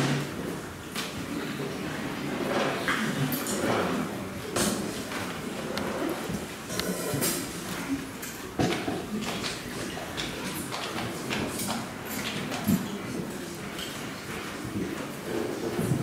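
A congregation of men and women sings along.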